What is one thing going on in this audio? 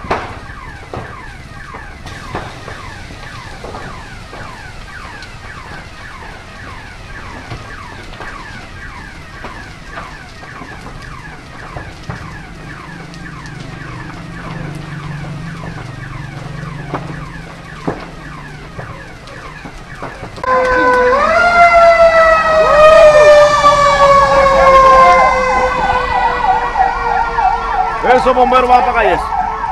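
A large fire crackles and roars.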